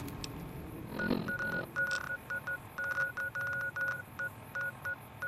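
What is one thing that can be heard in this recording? A small electronic device beeps and clicks in quick bursts.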